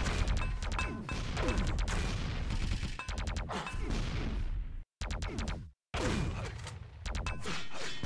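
Rapid game gunfire rattles and crackles.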